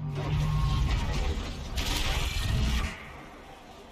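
A large machine stomps and roars.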